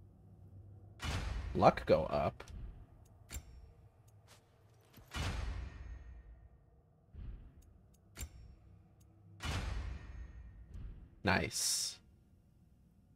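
Short whooshing menu sounds play now and then.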